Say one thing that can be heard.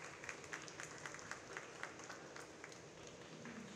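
A crowd claps in a large echoing hall.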